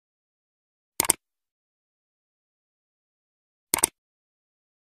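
A mouse button clicks sharply.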